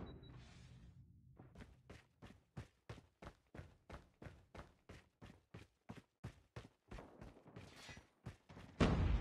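Footsteps patter quickly and evenly.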